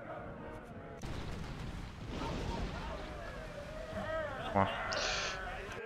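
Cannons fire with deep booms in a sea battle.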